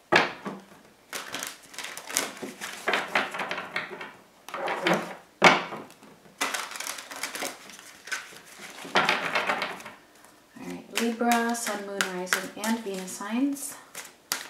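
Cards riffle and flutter as they are shuffled by hand.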